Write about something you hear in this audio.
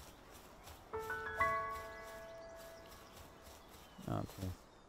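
A bright chiming tune rings out and fades.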